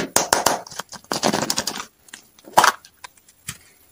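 A plastic capsule clicks open.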